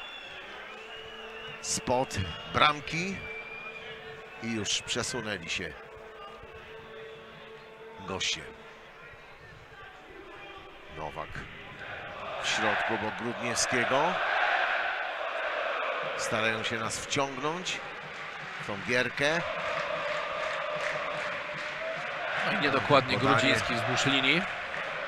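A large stadium crowd chants and cheers.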